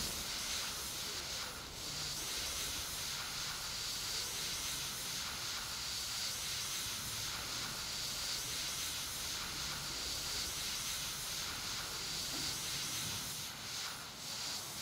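A water hose sprays with a steady hissing rush.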